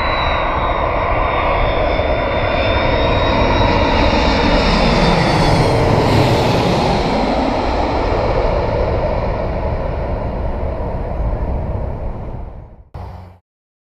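Cars drive by on a nearby road.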